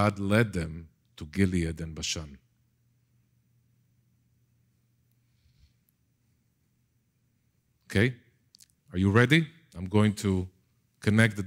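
A middle-aged man lectures with animation through a microphone.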